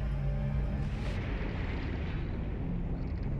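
Air bubbles burst and gurgle underwater.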